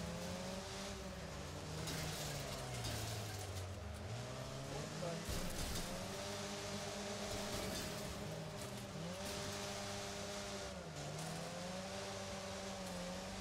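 A van engine revs up and down as the van drives.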